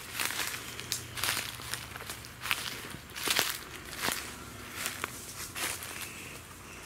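Footsteps crunch and rustle through dry fallen leaves.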